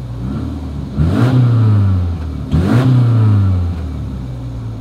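A car engine revs sharply twice, then settles back.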